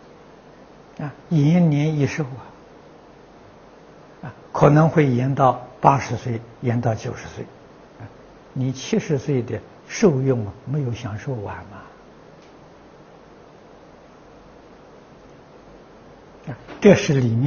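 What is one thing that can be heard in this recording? An elderly man speaks calmly and clearly into a close microphone, with pauses.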